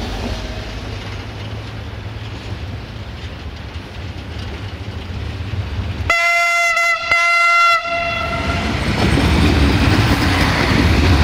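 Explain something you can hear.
A diesel train approaches and rumbles past on the rails.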